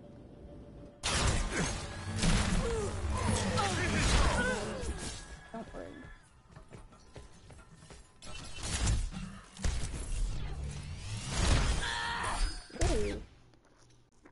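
Gunfire bursts rapidly in a video game.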